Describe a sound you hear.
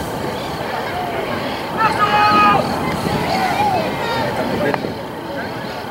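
Rugby players grunt and shout as they push in a scrum.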